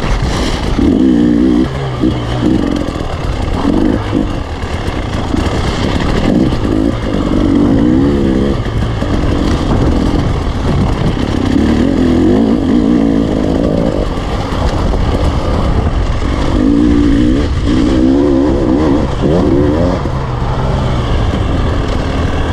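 Wind rushes hard over the microphone.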